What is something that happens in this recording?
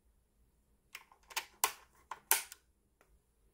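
A small plastic cover clicks open and shut.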